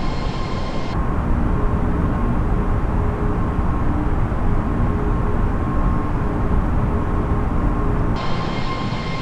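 A low, steady engine hum fills an airliner's cockpit.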